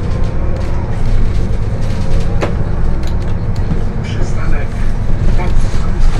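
A bus engine rumbles steadily from inside the vehicle.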